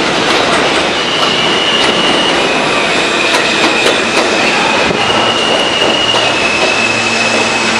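A subway train's brakes squeal as it pulls into a station.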